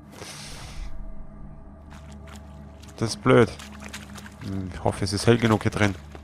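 Footsteps crunch on the forest ground.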